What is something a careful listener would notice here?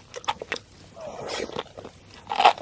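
A young woman slurps sauce close to a microphone.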